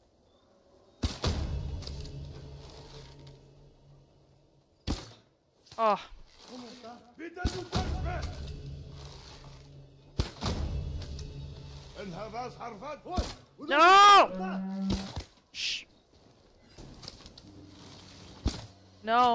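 A bow string twangs as arrows are loosed.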